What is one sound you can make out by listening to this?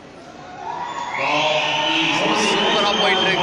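A crowd of people chatters loudly nearby.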